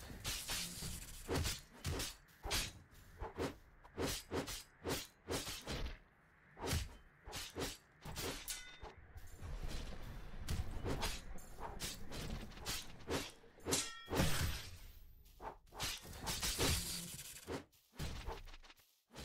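Heavy punches and impacts thud again and again in quick bursts.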